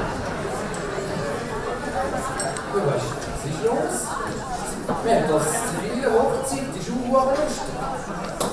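A second man answers in a loud, theatrical voice.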